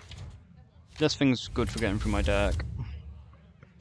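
A game's magic effect whooshes and shimmers.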